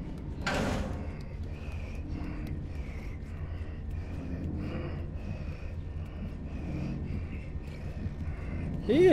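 Small footsteps patter quickly across a tiled floor.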